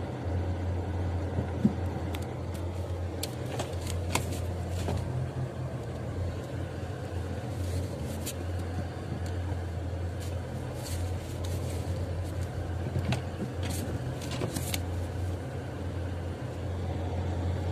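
Wind-driven snow patters and ticks against the windshield.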